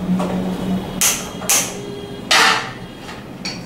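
A gas stove lighter clicks several times.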